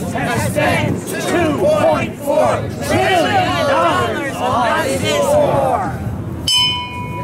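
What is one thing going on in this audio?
A crowd of men and women chant and sing together outdoors.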